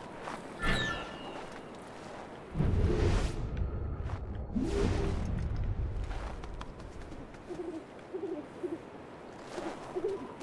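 Waves wash against a rocky shore.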